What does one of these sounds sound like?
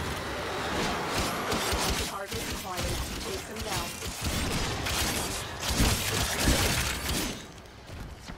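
Guns fire rapidly and blasts crash in a loud, chaotic fight.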